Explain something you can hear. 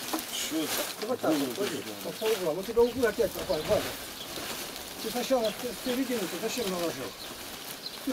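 A man talks with animation nearby, outdoors.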